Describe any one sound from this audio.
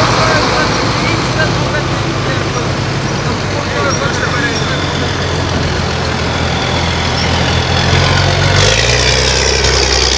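Tyres hum on the road as an armoured vehicle rolls past.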